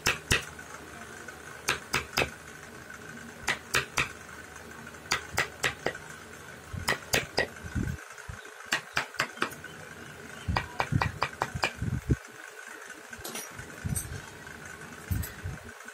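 A carving chisel taps and scrapes sharply against hard wood, in quick bursts.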